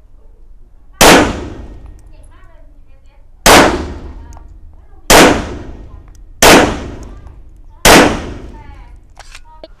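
A pistol fires loud shots one at a time, each ringing out outdoors.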